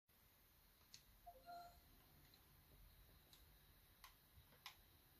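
Buttons click on a handheld game console.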